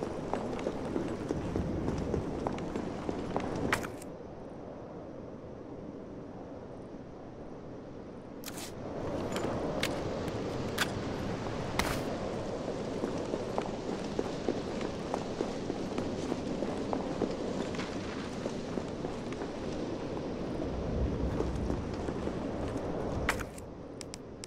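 Footsteps walk on stone pavement.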